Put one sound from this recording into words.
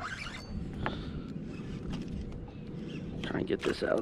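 A fishing reel clicks as its handle is wound.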